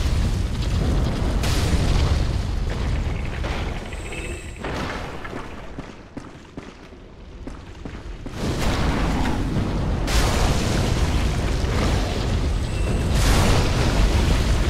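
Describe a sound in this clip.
A fireball bursts with a fiery whoosh.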